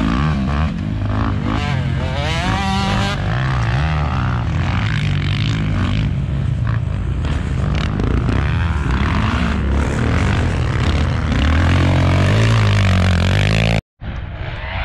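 Dirt bike engines rev and whine nearby.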